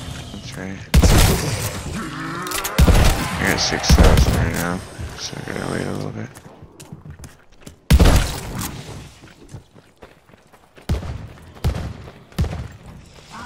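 A gun fires loud single shots in a row.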